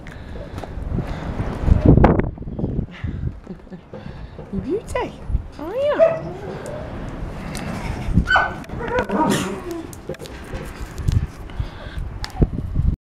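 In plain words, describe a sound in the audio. Hands rustle and bump against a puppy's fur close by.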